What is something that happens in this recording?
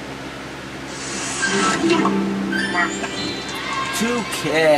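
Upbeat game music plays from a television.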